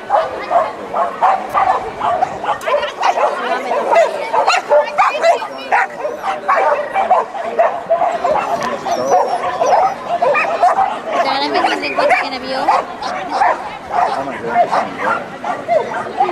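A woman calls out commands to a dog with animation, outdoors.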